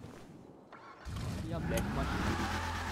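A car engine starts and revs up.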